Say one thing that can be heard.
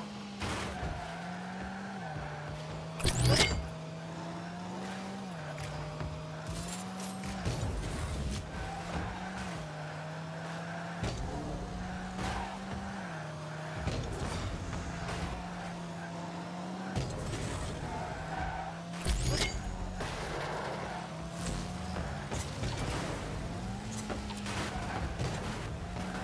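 Car engines hum and rev steadily throughout.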